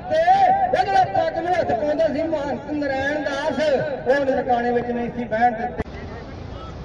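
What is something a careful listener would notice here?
A man chants loudly through a loudspeaker.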